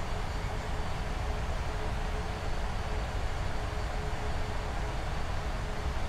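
Jet engines and rushing air roar steadily in a cockpit.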